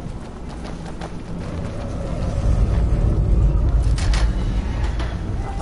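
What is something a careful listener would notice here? Armoured footsteps scuff across a stone floor.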